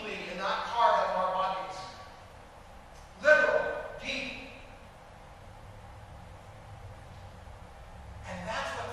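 An elderly man speaks calmly, in pauses.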